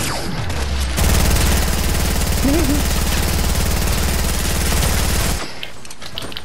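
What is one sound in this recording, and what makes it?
A gun fires in quick bursts.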